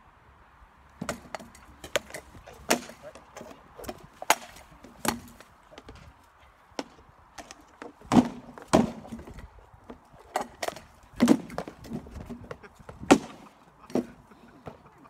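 Weapons clash and thud against shields and armour in a rapid, uneven series of sharp blows.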